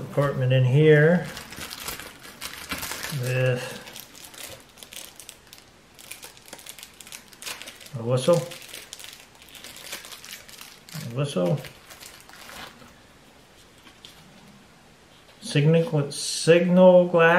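Small items rustle and clink as a man handles them.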